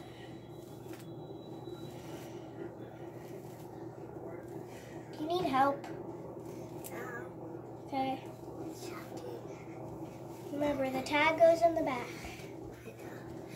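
A brush swishes through long hair.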